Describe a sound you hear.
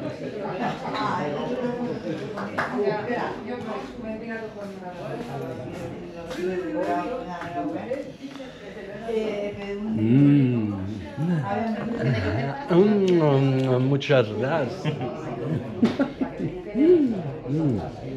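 A knife slices through cured ham.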